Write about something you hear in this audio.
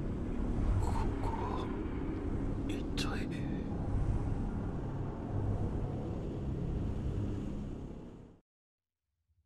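Wind blows steadily across open ground.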